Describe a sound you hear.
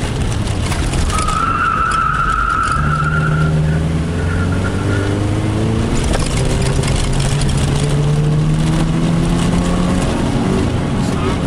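A car engine revs up and down loudly from inside the car.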